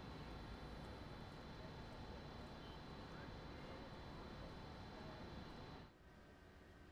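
A steady rushing background noise fills the air.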